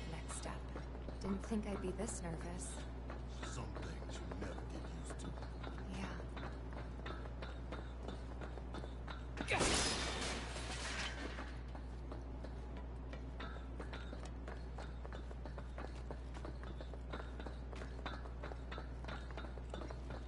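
Footsteps clang on a metal grating.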